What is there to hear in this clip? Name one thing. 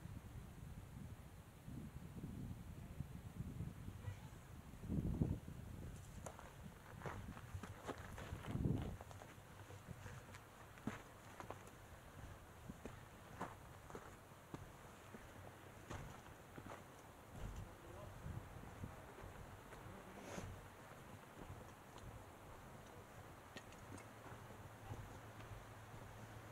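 Footsteps crunch on a rocky dirt trail.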